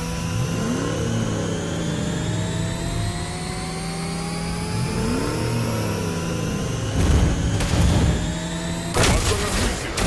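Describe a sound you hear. A toy-like engine whirs steadily with rising tones.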